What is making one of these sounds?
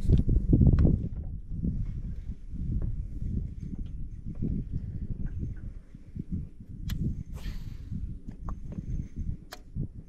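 A fishing reel clicks and whirs as its line is wound in.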